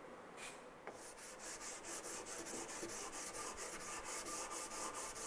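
Sandpaper rubs back and forth over wood in quick strokes.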